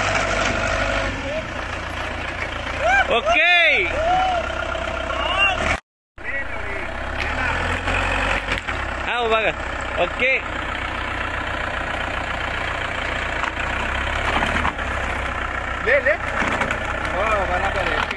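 A forklift engine rumbles steadily nearby.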